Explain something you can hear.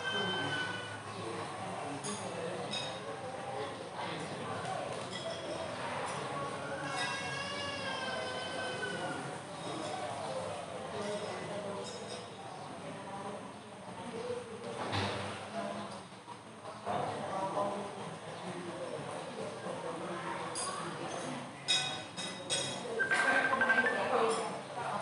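Several adults talk quietly nearby.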